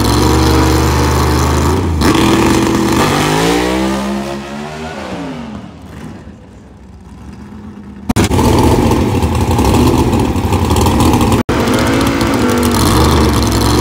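A drag car's engine idles close by with a loud, deep, lumpy rumble.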